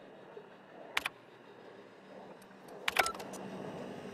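A computer terminal clicks and beeps as keys are pressed.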